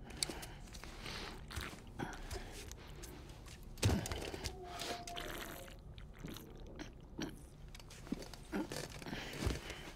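A man gulps down a drink.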